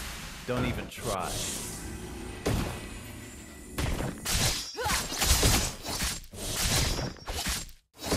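Game character attacks clang and thud.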